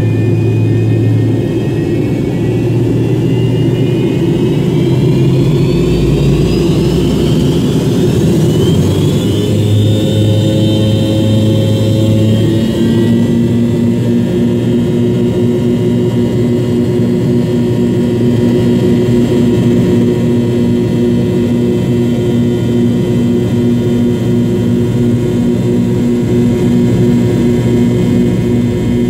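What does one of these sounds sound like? Wheels rumble over a runway.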